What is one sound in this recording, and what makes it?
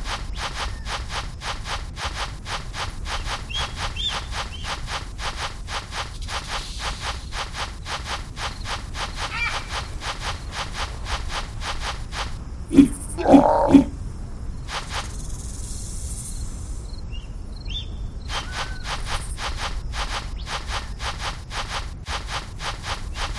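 Paws pound quickly and steadily across sand.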